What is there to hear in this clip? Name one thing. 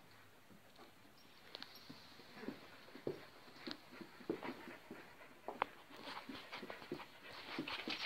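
A dog's claws tap on a hard floor.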